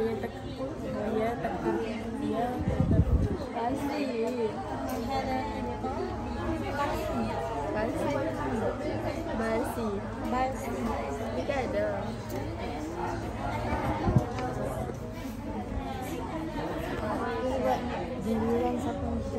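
Teenage girls chatter and talk close by in a busy room full of voices.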